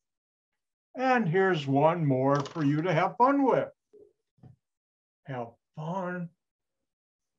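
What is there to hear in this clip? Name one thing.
An elderly man speaks calmly over an online call, explaining.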